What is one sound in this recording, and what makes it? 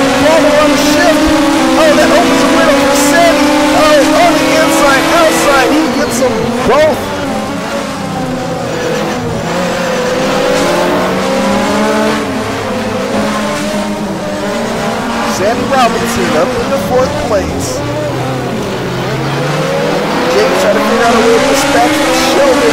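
Other racing car engines whine nearby.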